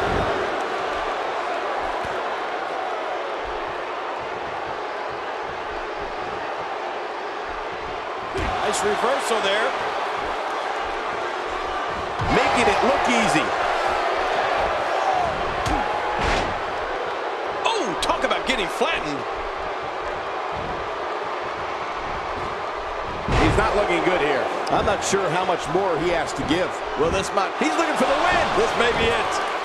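A large crowd cheers and roars steadily in a big hall.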